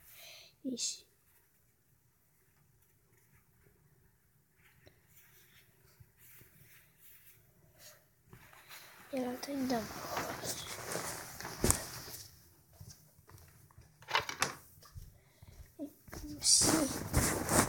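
Fabric rustles and brushes as a hand handles it close by.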